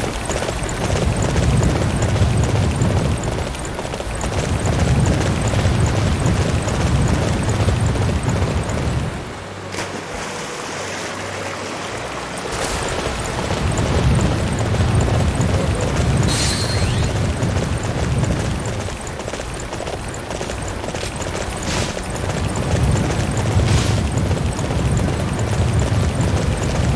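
A horse gallops with heavy thudding hooves.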